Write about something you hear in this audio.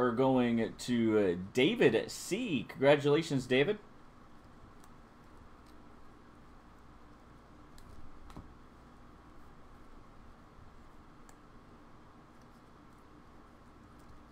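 Trading cards rustle and click softly as a hand shuffles through them.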